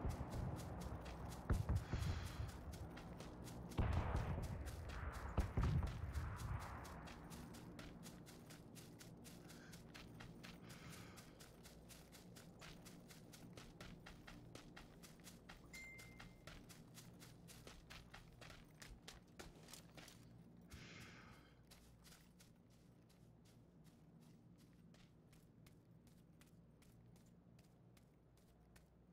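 Footsteps thud quickly and steadily through grass and onto a road.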